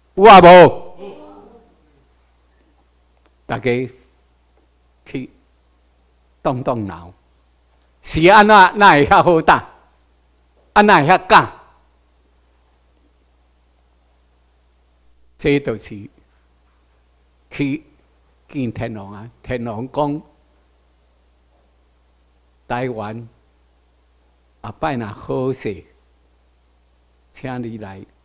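An older man speaks through a microphone and loudspeakers in a large room, in short bursts with pauses.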